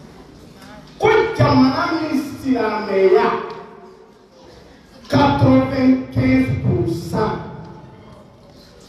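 A man speaks loudly and with animation into a microphone, his voice amplified in a room.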